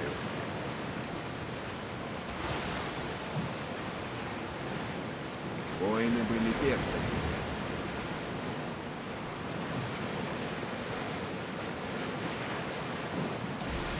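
Waves splash and rush steadily around a sailing ship's hull.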